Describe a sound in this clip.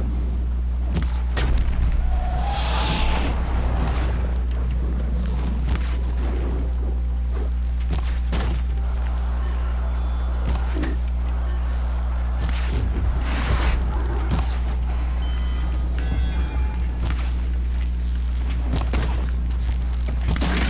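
Arrows whoosh through the air.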